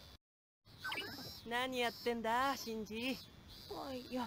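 A girl asks a question with a lively voice.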